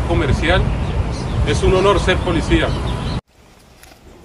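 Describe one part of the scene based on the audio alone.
A man speaks calmly and clearly, close to the microphone.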